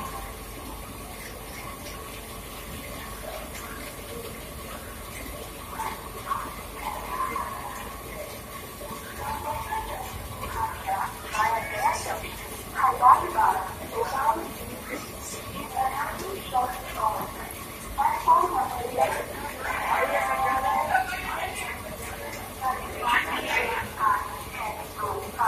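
A passenger train rolls slowly along a platform.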